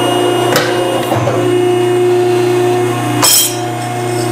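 A metalworking machine punches through metal with a sharp clunk.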